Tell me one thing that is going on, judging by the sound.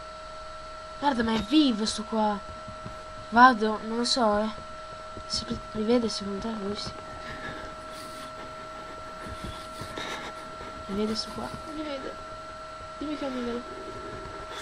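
A young man talks into a microphone with animation, close by.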